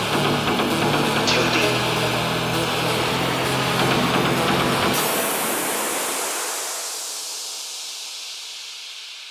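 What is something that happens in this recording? Electronic dance music plays loudly over speakers, then the bass drops away and the music slowly fades.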